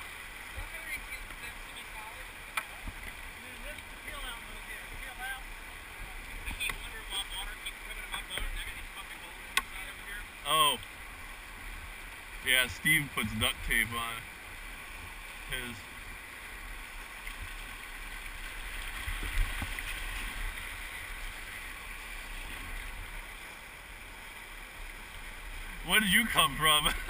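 River rapids rush and churn steadily nearby.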